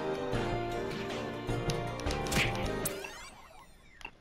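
Cheerful game music plays and ends with a short flourish.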